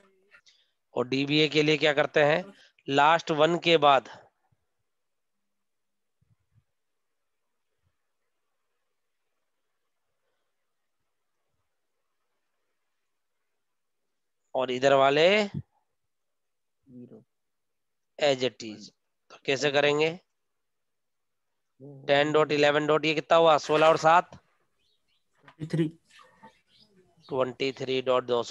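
A man speaks calmly through a microphone, pausing now and then.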